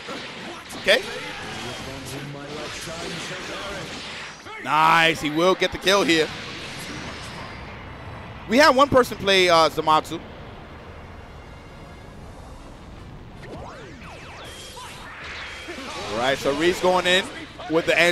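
Energy blasts whoosh and crackle in bursts.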